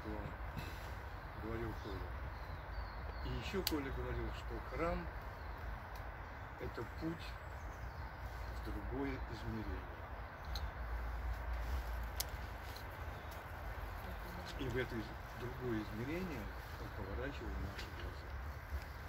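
An elderly man speaks calmly, somewhat distant and without amplification.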